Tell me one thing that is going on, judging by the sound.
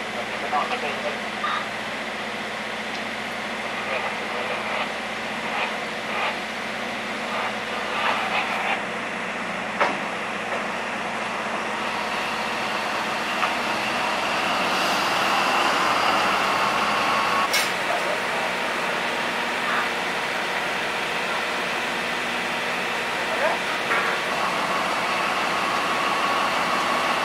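A diesel locomotive engine rumbles steadily as it rolls slowly along the track.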